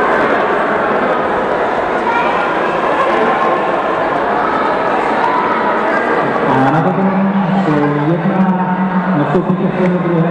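A crowd of children and adults chatters in an echoing sports hall.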